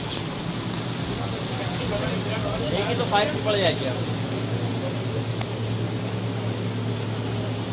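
A crowd of people murmurs all around.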